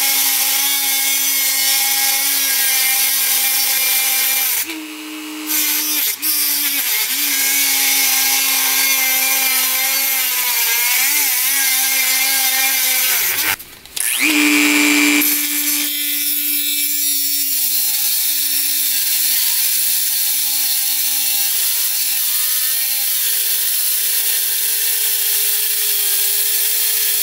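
An angle grinder whines as it cuts through steel.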